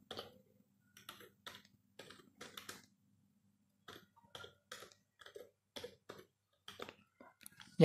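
Keys clatter on a keyboard in quick bursts of typing.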